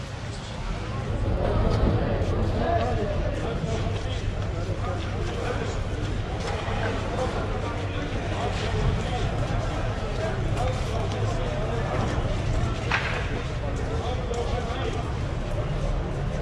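Many people murmur and chatter in the background.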